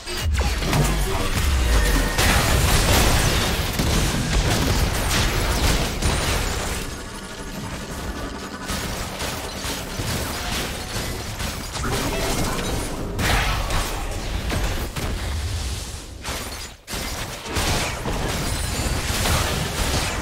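Spell blasts and hits clash during a video game battle.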